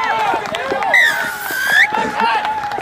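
A referee's whistle blows one long shrill blast.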